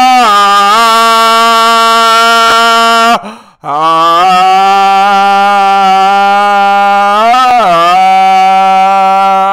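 A man sings long, loud held notes into a microphone close by.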